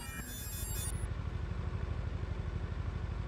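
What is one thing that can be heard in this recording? A motorcycle engine rumbles steadily.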